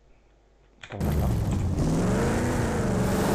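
A car engine roars loudly.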